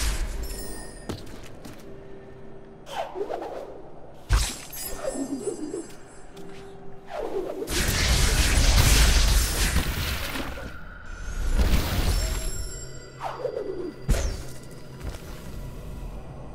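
Soft chimes twinkle high and light.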